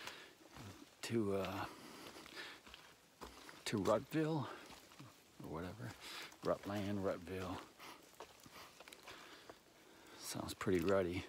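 An older man talks calmly and close up, in short bursts.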